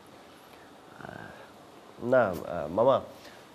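A young man answers in a low voice.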